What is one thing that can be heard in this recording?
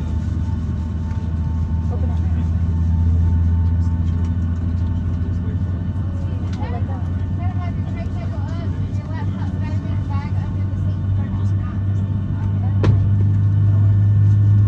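Jet engines hum with a steady low drone inside an airplane cabin.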